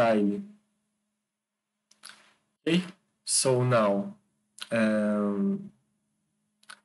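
A young man speaks calmly and close to a microphone, in short phrases.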